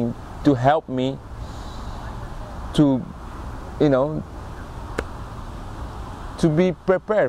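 A young man speaks calmly and close by, in short phrases with pauses, outdoors.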